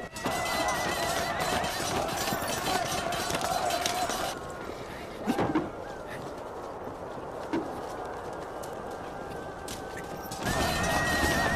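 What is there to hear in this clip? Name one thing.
Many horses gallop over hard ground in a loud rumble.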